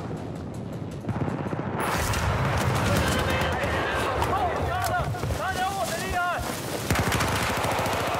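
Gunfire rattles in rapid bursts, loud and close.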